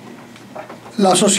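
A man speaks through a microphone in a room.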